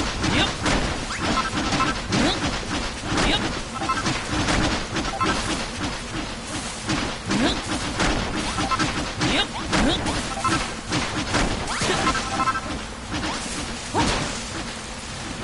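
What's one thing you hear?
A hammer thuds repeatedly into earth.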